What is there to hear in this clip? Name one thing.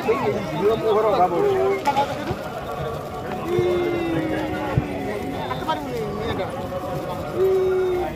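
A man talks playfully to a small child nearby.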